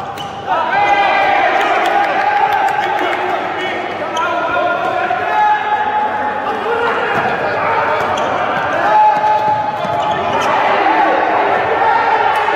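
A ball bounces on a hard floor with dull thuds.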